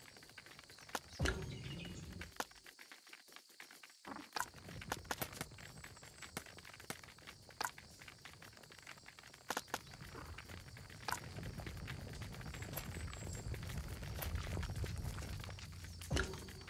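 Short menu clicks sound again and again.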